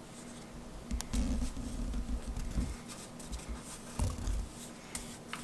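Fingers press and slide over paper and wood.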